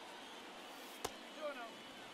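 A pitched ball smacks into a catcher's mitt.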